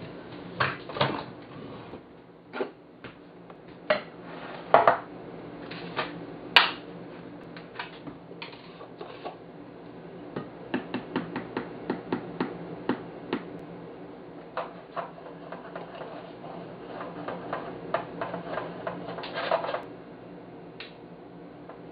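Glass jars and bottles clink and knock on a hard counter.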